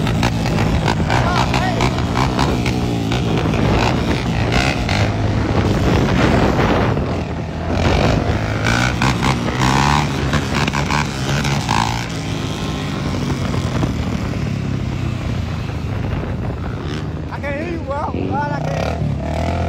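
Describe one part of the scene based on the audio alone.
A quad bike engine revs loudly close by.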